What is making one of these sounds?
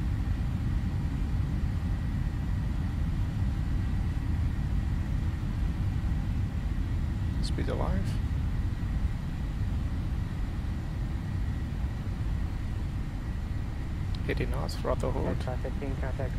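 Jet engines roar steadily as an airliner rolls down a runway.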